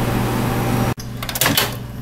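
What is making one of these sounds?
A microwave oven door clicks open.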